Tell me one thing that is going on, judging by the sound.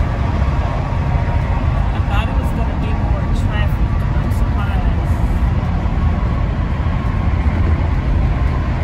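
A car's engine and tyres rumble steadily from inside the car on a highway.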